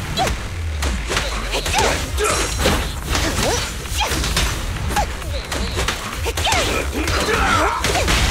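Sword slashes whoosh and strike in quick succession.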